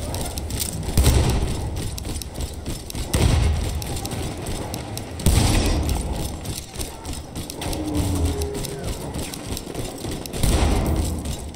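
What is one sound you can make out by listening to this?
A rifle fires loud shots that echo in a large hall.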